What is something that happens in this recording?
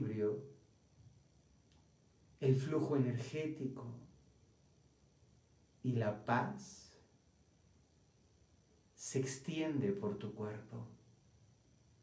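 A man speaks calmly and slowly into a nearby microphone, with long pauses.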